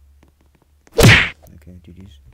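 A hammer blow lands on a game character with a heavy thud.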